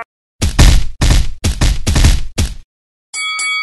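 Wet splatting crashes burst in quick succession.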